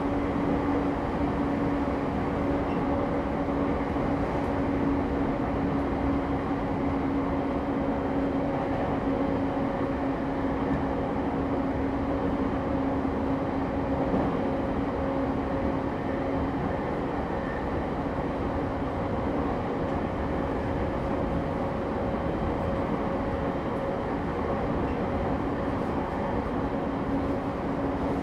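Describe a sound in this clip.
A stopped electric train hums steadily.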